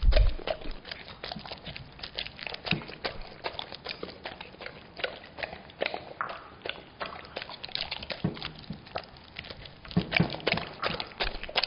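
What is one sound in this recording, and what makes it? A dog licks and laps at food up close, with wet smacking sounds.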